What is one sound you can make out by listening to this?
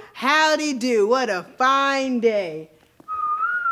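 A young man sings in a loud, bright voice.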